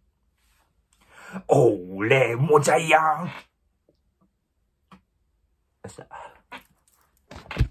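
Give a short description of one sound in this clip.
A young man speaks expressively close to the microphone, in short bursts.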